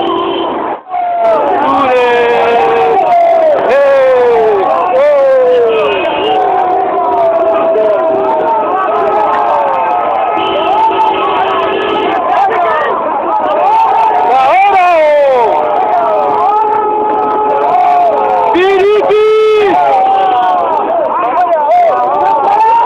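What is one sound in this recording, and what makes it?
A crowd of men shouts and cheers nearby.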